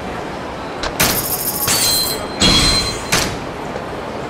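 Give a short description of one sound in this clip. Short electronic chimes ring out.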